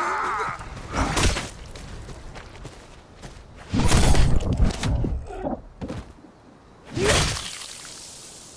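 Heavy blunt blows thud and smack.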